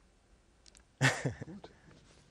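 A man laughs briefly.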